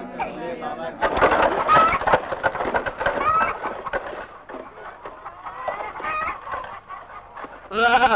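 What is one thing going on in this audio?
A handcart rattles over a dirt road.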